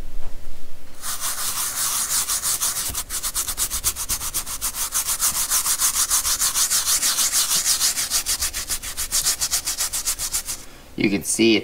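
A small brush scrubs rapidly against a fabric pad with a fast, rhythmic rasping.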